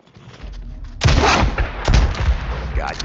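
A rifle fires loud shots.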